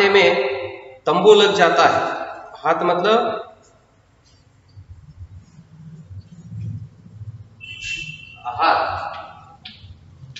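A man reads aloud clearly and calmly, close by.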